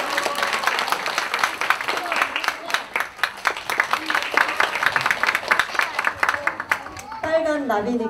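An audience claps loudly in an echoing hall.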